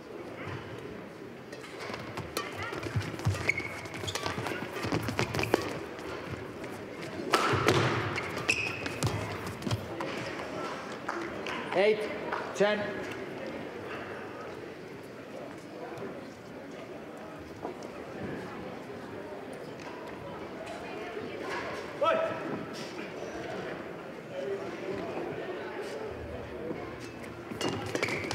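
Rackets strike a shuttlecock in quick rallies in a large echoing hall.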